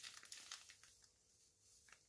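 Breadcrumbs pour softly onto a plate.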